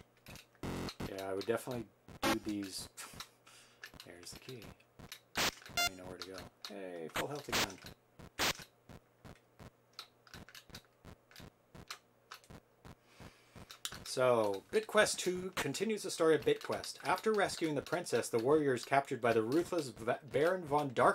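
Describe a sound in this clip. Two men talk with animation close to a microphone.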